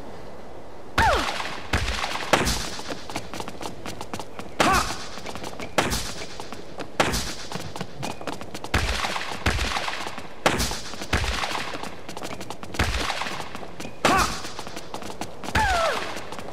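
Tennis rackets strike a ball back and forth in a sharp, steady rally.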